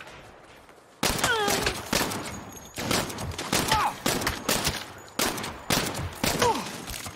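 A pistol fires repeated sharp shots.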